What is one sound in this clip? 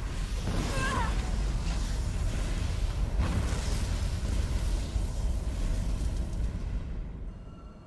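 A fire roars with a loud, steady rush.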